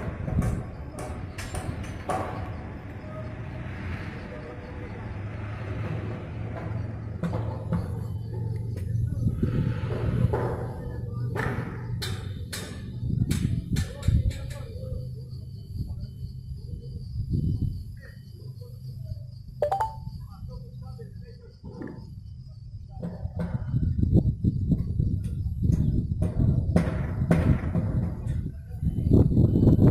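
Metal clanks and knocks sound from a building site.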